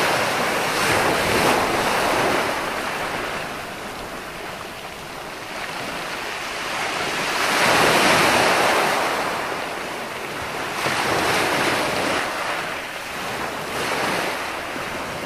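Ocean waves roll in and break on the shore in steady surges.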